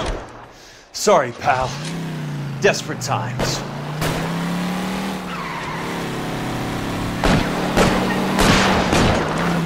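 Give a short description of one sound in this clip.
A car engine starts and hums steadily while accelerating.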